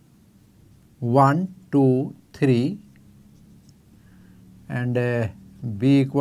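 An elderly man speaks calmly and clearly, explaining in short phrases.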